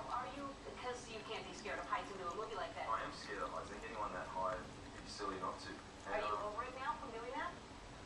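A cat laps water from a jug.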